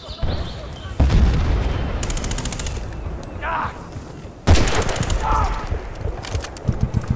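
Gunshots fire in loud short bursts.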